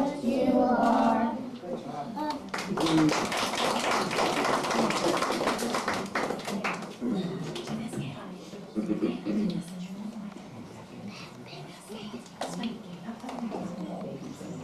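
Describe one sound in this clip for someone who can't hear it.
A group of young children sing together close by.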